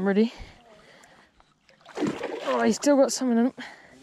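A net splashes into the water.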